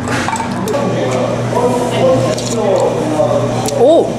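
A metal spoon clinks against a stone pot.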